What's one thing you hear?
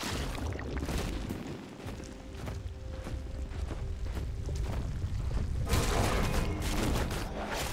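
Game characters' attacks clash with sharp hits.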